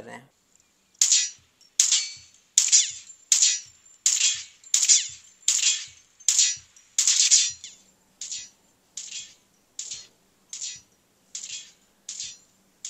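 Gunshots from a mobile game ring out in regular bursts through a small phone speaker.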